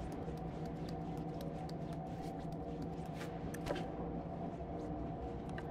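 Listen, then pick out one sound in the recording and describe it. Small footsteps patter softly on a hard floor.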